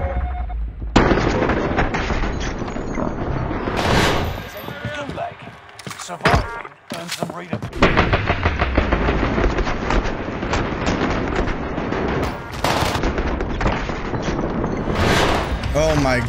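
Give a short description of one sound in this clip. A heavy rotary machine gun fires in long rapid bursts.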